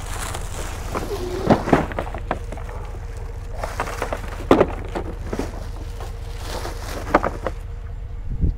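A plastic trash bag rustles and crinkles as hands dig through it.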